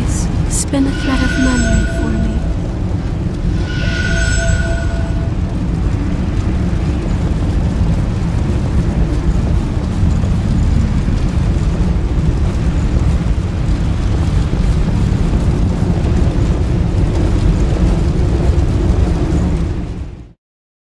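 Fire roars steadily.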